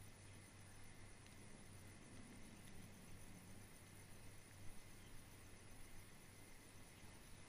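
Wind blows steadily, rustling leaves.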